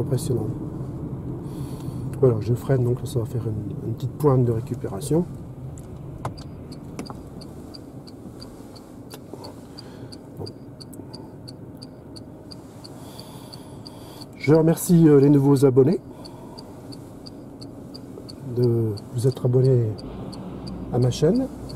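A car hums quietly with tyres rolling on the road.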